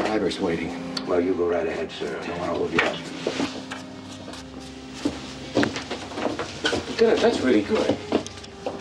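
Several men talk back and forth at close range.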